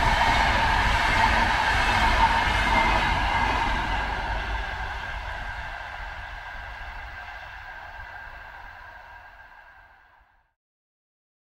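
A train rumbles along its tracks nearby and slowly fades into the distance.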